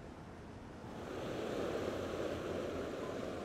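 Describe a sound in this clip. Water churns and rushes in a boat's wake.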